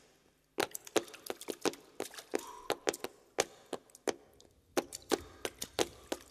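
Shoes stamp rhythmically on a hard floor in quick bursts.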